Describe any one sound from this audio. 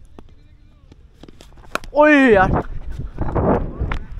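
A cricket ball knocks sharply against a bat.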